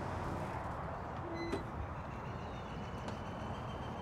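A car door opens.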